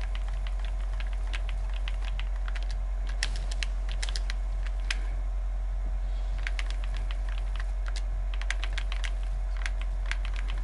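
Sharp clicks of game structures being built and edited come in quick bursts.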